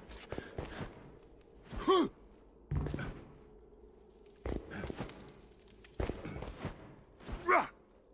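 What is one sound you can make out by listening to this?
Footsteps land with heavy thuds after jumps.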